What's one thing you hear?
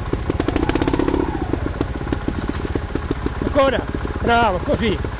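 A motorbike's tyres roll and crunch over rocky dirt.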